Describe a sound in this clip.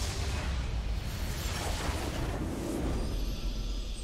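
Magical blasts crackle and boom.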